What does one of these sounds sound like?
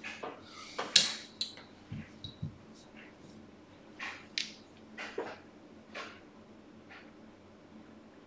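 Casino chips click together as they are stacked and moved.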